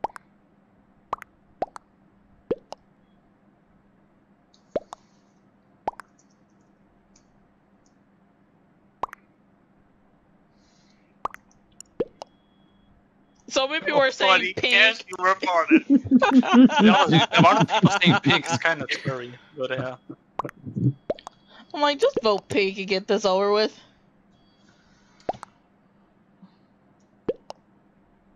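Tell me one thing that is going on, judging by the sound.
Short soft blips sound as chat messages pop up.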